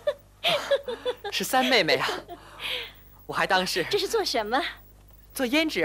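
A young woman speaks in a high, sing-song stage voice.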